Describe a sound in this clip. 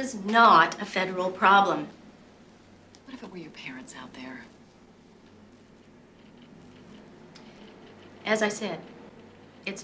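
A middle-aged woman speaks calmly and firmly nearby.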